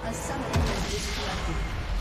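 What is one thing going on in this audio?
Fantasy battle effects clash and burst with magical whooshes.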